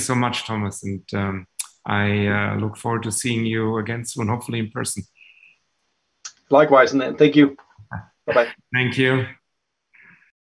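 A man talks cheerfully over an online call.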